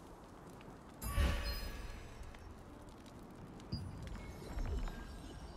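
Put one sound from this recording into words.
Short game interface sounds click and chime.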